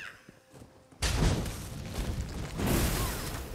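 Fighting erupts with loud, rushing blows and whooshes.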